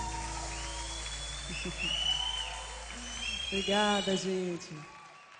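A band plays music on stage.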